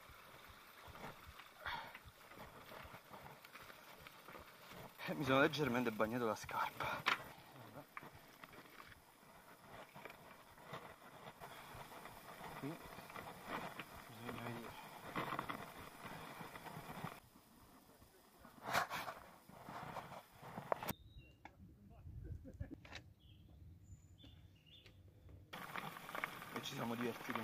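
Bicycle tyres crunch and roll over rocky dirt.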